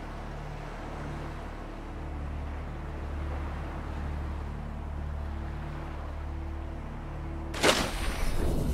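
Waves wash gently at the water's surface.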